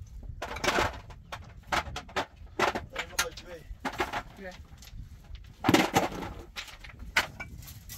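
Rubble and dry debris rustle and scrape as a man digs by hand.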